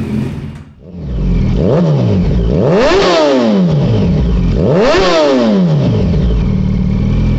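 A motorcycle exhaust roars up close as the engine revs up and down repeatedly.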